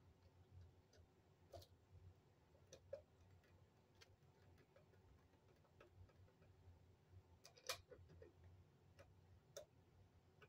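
A screwdriver clicks and scrapes against a metal fitting.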